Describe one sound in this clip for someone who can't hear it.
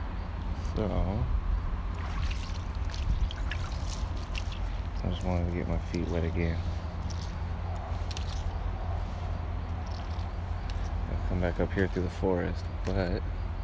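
Footsteps crunch on dry dirt and grass.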